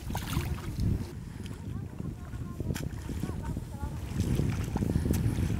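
Feet splash and squelch through shallow muddy water.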